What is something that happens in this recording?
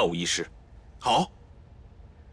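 Another man answers briefly in a calm voice.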